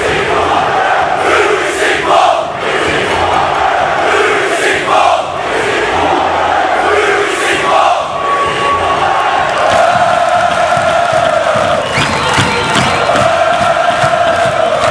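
A large crowd of men chants and sings loudly in unison.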